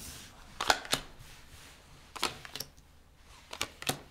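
Cards are laid down softly on a hard tabletop.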